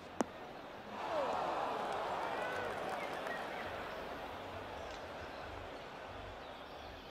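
A crowd cheers and applauds in the open air.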